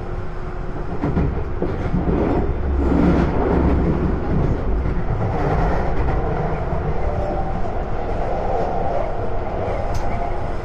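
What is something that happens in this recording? Train wheels rumble and clatter over track switches.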